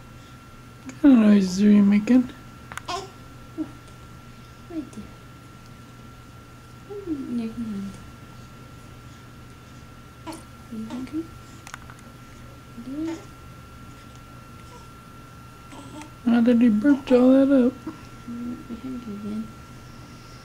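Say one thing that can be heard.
A newborn baby fusses and whimpers up close, with short cries now and then.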